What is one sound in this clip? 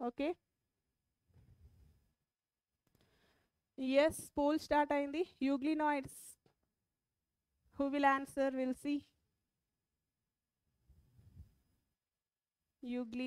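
A woman speaks calmly into a close microphone, in short bursts with pauses.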